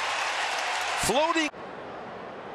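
A large crowd cheers and claps loudly.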